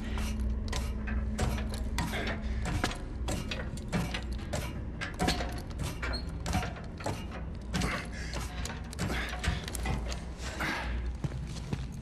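Boots clang on metal ladder rungs in quick steps.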